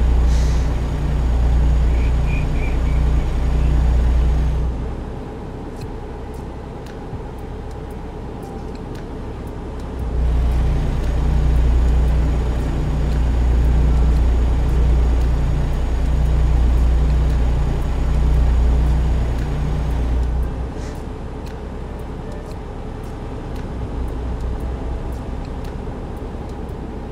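A truck engine drones steadily, swelling louder and softer.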